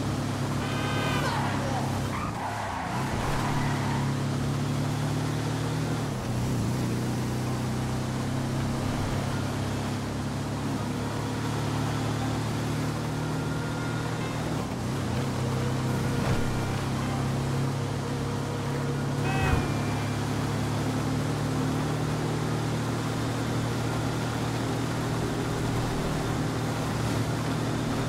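A buggy's engine drones steadily as it drives along a road.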